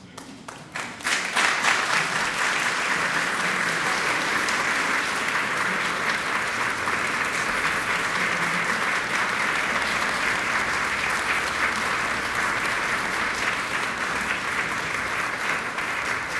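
An audience applauds steadily in a large room.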